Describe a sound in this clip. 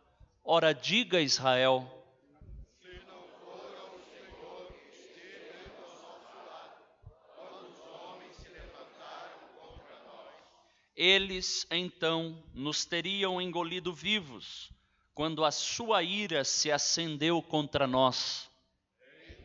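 A man reads aloud through a microphone in a firm, carrying voice.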